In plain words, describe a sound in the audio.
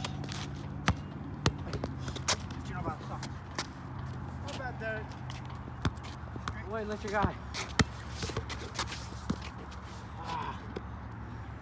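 A basketball bounces on concrete.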